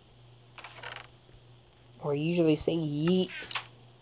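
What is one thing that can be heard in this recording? A wooden chest creaks shut.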